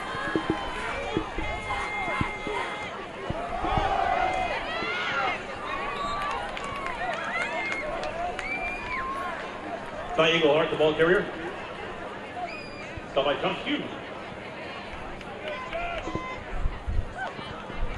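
Football players shout and call out across an open outdoor field.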